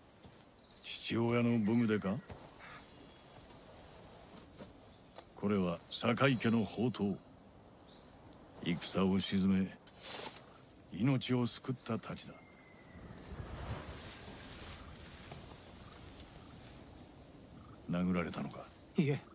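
A middle-aged man speaks calmly and gravely, close by.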